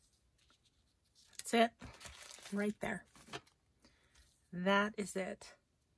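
A card is laid down and pressed onto paper.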